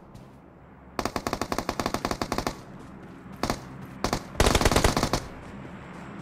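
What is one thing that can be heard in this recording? Rapid rifle gunfire rattles in short bursts.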